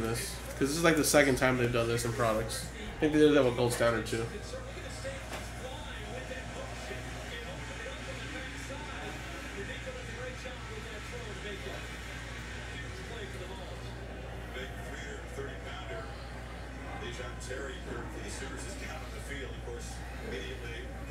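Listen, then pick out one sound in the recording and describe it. Cards shuffle and rustle in hands.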